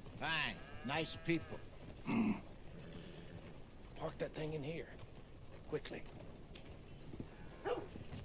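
A horse-drawn wagon rolls over dirt.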